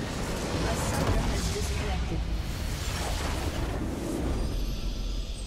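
A large structure explodes with a deep, rumbling blast.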